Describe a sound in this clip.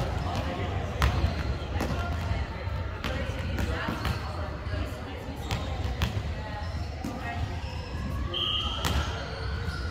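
A volleyball thuds on a wooden floor.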